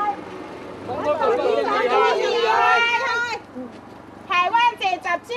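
A crowd of men and women shouts slogans loudly outdoors.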